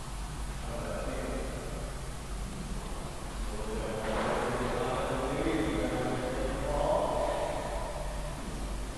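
A man talks calmly in an echoing room.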